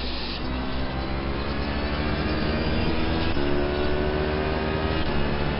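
A racing car engine roars at high revs and shifts gears.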